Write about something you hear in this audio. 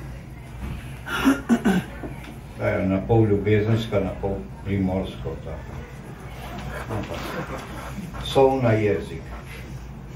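An elderly man reads aloud calmly into a microphone, heard through a loudspeaker in an echoing room.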